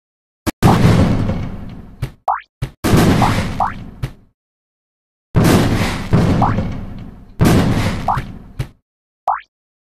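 Bombs explode with loud booming blasts in a video game.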